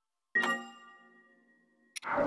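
A bright chime rings and fades.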